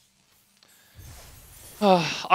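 A bright reward chime rings out with a sparkle.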